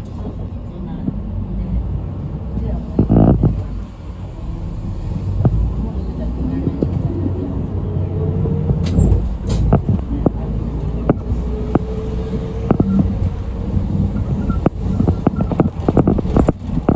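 The bus body rattles and clicks over the road.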